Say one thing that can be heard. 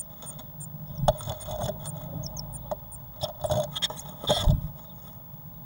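A second blue tit lands at a nest box entrance with a flutter of wings.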